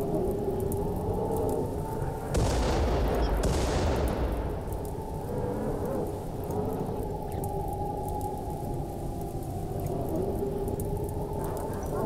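Fire crackles and burns steadily.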